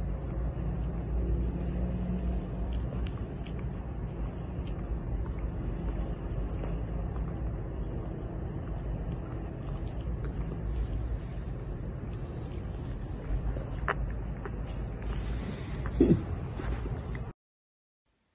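A dog sniffs and snuffles closely.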